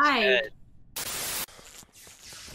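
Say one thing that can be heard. Television static hisses loudly.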